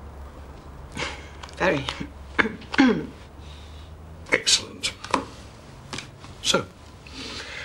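An elderly man laughs heartily up close.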